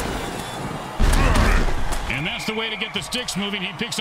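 Armoured football players crash together in a heavy tackle.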